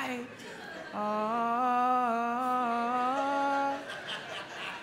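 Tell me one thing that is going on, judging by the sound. A man holds a long sung note through a microphone.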